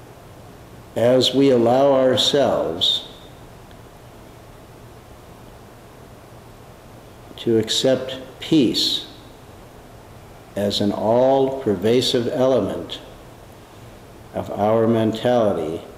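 An older man speaks calmly and close by, with long pauses.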